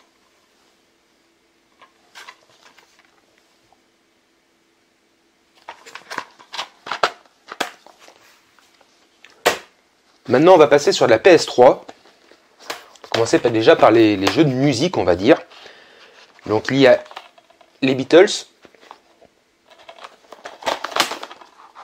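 Plastic game cases click and rattle in a man's hands.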